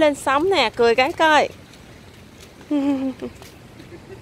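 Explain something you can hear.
A young girl chatters and squeals excitedly close by.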